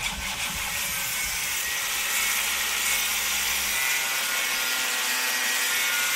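An angle grinder whines as it grinds metal.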